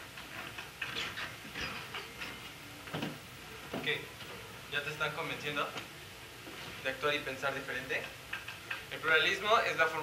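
A young man speaks with animation in a large hall, heard through a loudspeaker.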